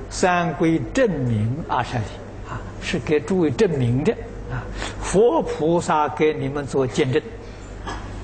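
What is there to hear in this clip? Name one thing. An elderly man speaks calmly and warmly into a microphone.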